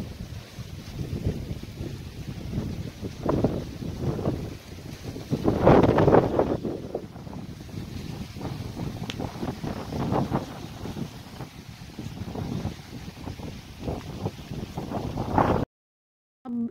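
Wind gusts outdoors, rumbling against the microphone.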